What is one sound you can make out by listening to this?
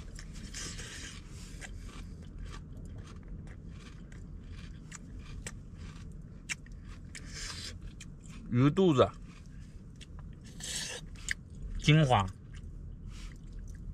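A young man slurps and chews food noisily.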